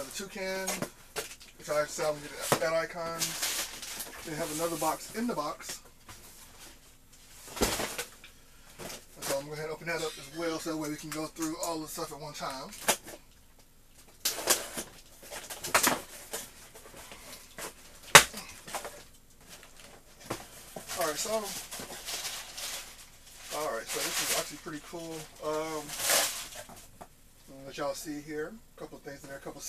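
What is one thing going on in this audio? Cardboard boxes knock and scrape as they are handled.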